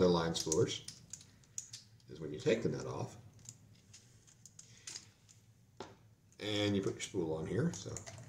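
Plastic parts of a small stand click and rattle in hands.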